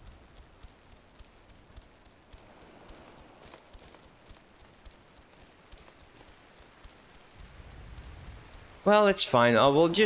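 Hooves clop steadily on the ground.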